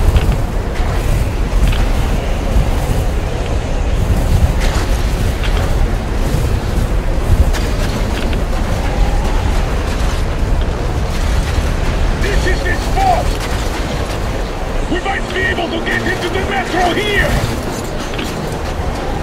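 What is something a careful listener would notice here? A strong wind roars steadily outdoors.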